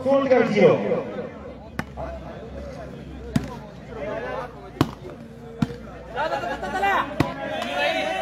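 Young men shout and call out outdoors during play.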